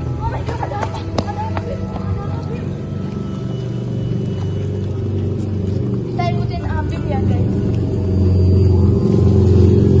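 Footsteps scuff on wet paving stones.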